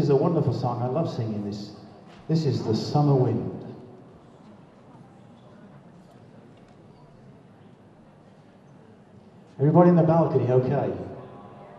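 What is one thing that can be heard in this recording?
A big band plays loud, brassy jazz chords in short bursts in an echoing hall.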